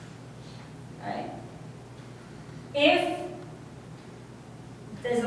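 A woman speaks in short phrases, as if explaining to a room.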